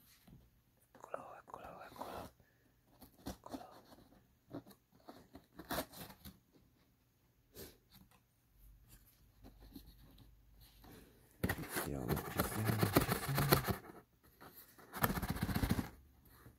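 A cardboard box rustles and scrapes as a hand handles it.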